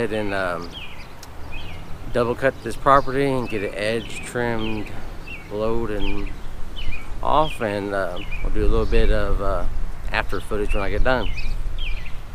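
A middle-aged man talks calmly and close up, outdoors.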